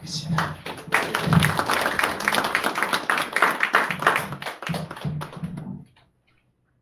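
People applaud with steady clapping.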